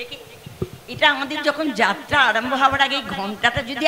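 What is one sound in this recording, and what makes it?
An elderly woman speaks into a microphone through loudspeakers.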